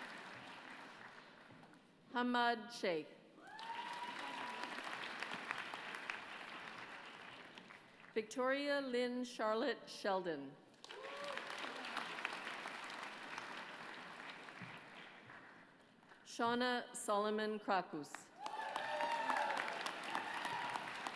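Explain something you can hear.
An audience applauds in a large hall, rising and falling in waves.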